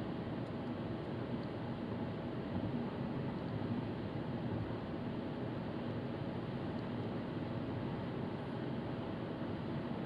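A car's engine and tyres rumble steadily from inside the car while it drives along a road.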